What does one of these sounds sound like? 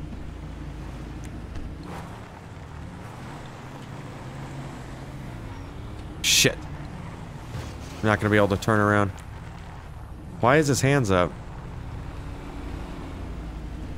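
A car engine hums and revs as the car drives along a road.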